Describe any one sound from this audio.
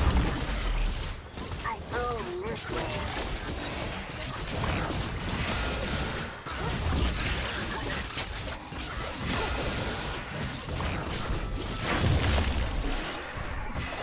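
Video game spell effects crackle and boom in a hectic fight.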